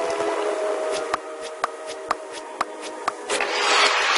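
Short electronic ticks sound at a steady pace as a score counts up.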